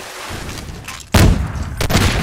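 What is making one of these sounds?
Gunshots fire loudly, echoing off hard walls.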